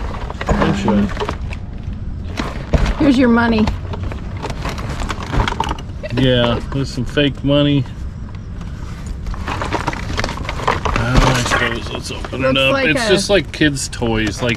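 A plastic bag crinkles and rustles in hands.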